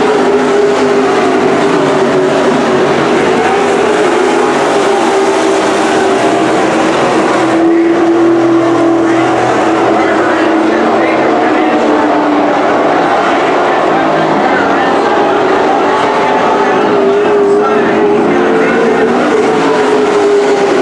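Race car engines roar loudly.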